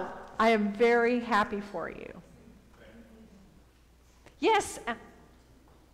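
A woman speaks up briefly in a room with a slight echo.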